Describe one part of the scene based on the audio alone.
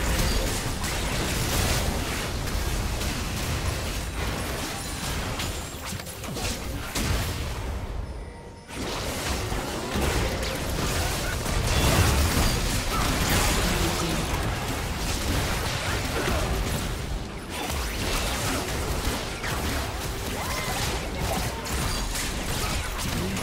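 Game characters clash with sharp hits and blasts.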